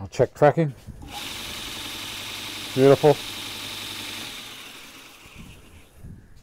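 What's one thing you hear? A belt grinder whirs steadily, then winds down.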